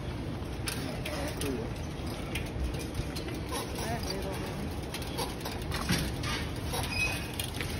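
A bicycle rattles as it is wheeled along.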